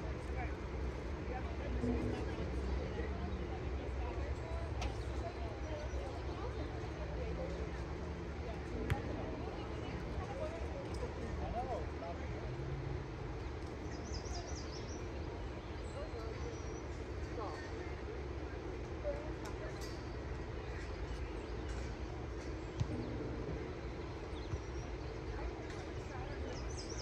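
Young women chat quietly some way off, outdoors.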